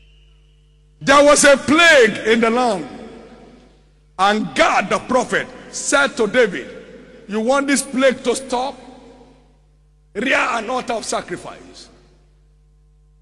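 A man preaches forcefully through a microphone.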